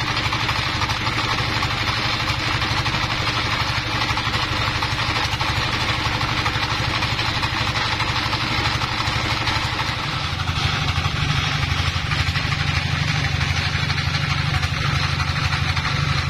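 A diesel engine runs with a loud, steady chugging throughout.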